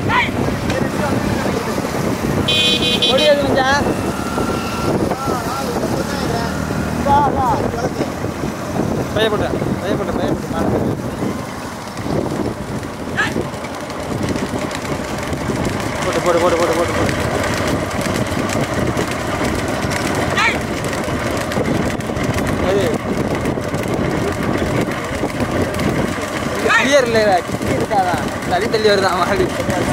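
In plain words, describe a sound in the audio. Hooves clatter on a paved road.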